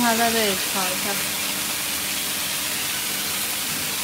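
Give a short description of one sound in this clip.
Food sizzles in a hot wok.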